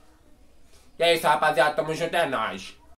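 A young man sings loudly up close.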